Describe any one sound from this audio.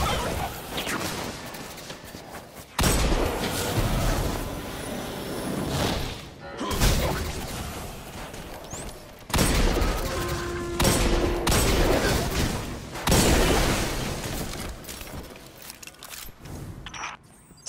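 Gunfire bursts rapidly.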